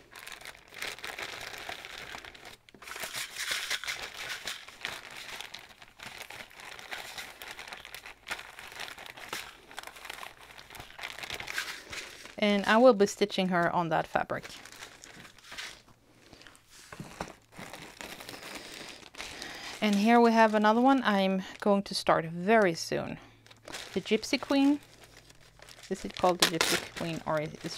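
Plastic bags crinkle and rustle as they are handled.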